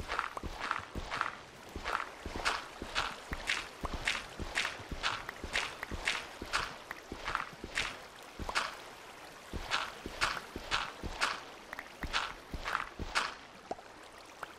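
A pickaxe chips rapidly and steadily at stone.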